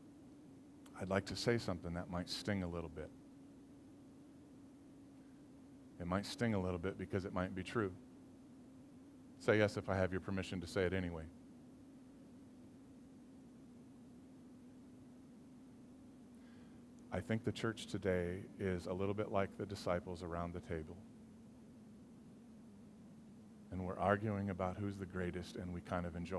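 A middle-aged man speaks calmly through a microphone, in bursts with pauses.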